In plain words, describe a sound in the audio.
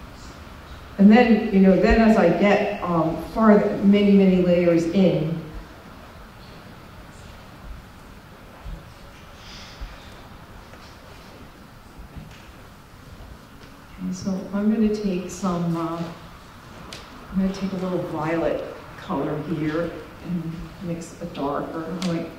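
A woman speaks calmly into a nearby microphone.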